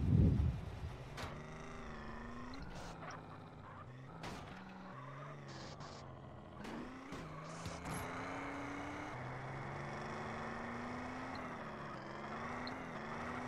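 A car engine revs and hums steadily.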